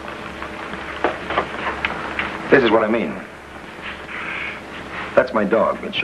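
A young man speaks with animation in an old, crackly recording.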